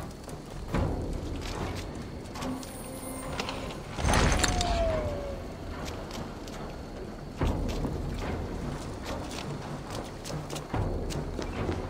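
Footsteps thud on wooden boards and stone.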